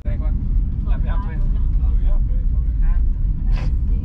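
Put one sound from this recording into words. A young woman talks close by inside a car.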